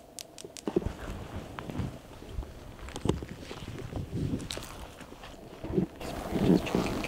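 Footsteps crunch on dry ground and twigs outdoors.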